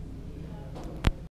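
A hand taps on a table near the microphone.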